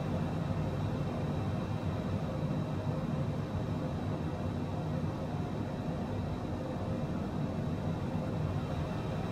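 An aircraft engine drones steadily inside a small plane's cabin.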